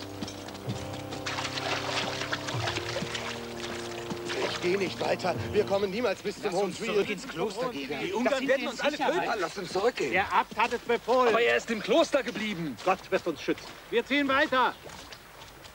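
A group of men chant slowly in unison.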